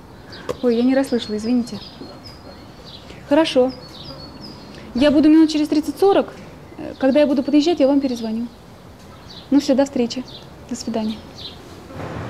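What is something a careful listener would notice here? A woman speaks calmly into a phone, close by.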